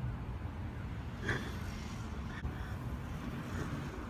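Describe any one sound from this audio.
A car's tailgate swings open with a thud.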